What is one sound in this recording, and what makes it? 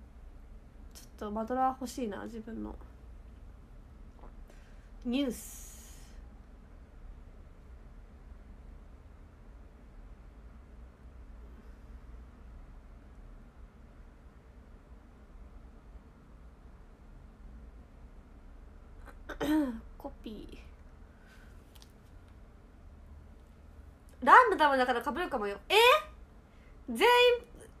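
A young woman speaks softly and close by, with long pauses.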